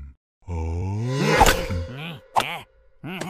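A cartoon vampire shrieks in fright.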